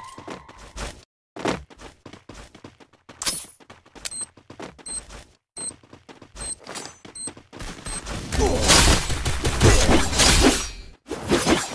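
Footsteps patter quickly.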